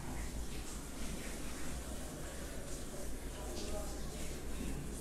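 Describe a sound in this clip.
A felt eraser rubs and squeaks across a whiteboard in quick strokes.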